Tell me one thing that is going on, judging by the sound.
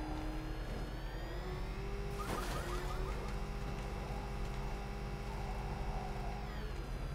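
A powerful car engine roars steadily at high speed.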